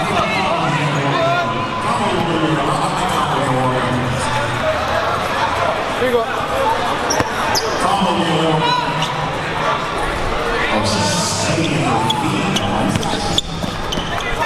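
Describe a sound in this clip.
A crowd chatters and cheers loudly in an echoing gym.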